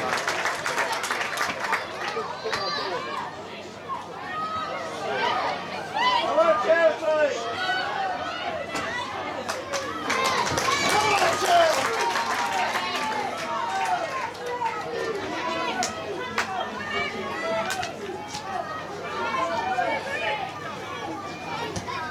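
A crowd of men and women chatters and calls out nearby, outdoors.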